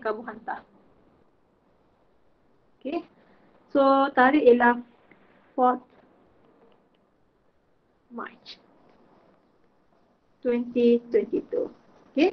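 A woman speaks calmly in short phrases, heard through an online call.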